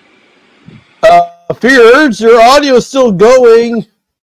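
A young man speaks loudly and expressively close to a microphone.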